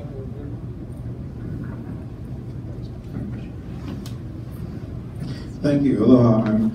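A man speaks into a microphone over loudspeakers in a large room.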